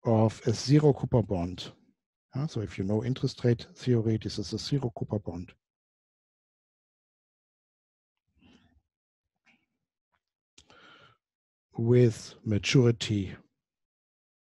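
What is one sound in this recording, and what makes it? A man lectures calmly into a close microphone, pausing between phrases.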